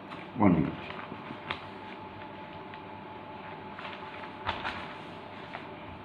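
Sheets of paper rustle as they are moved.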